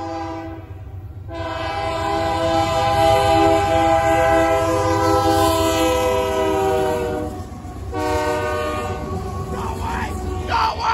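Diesel locomotive engines rumble heavily as a train passes close by.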